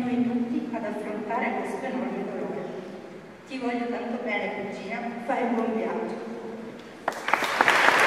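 A woman reads aloud into a microphone in an echoing hall.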